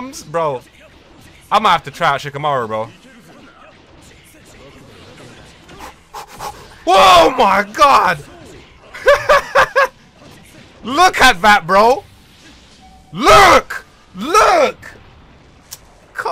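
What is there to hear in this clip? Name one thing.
Blows and magic blasts crash and whoosh in a fast fight.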